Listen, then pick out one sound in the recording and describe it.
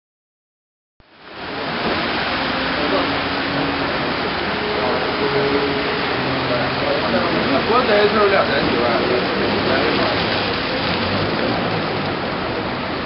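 Fountain jets of water spray and splash into a pool.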